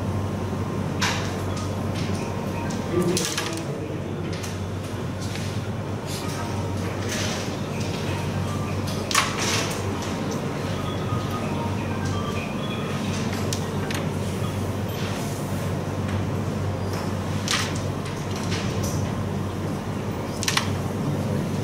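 A striker flicked across a wooden board clacks sharply against the playing pieces.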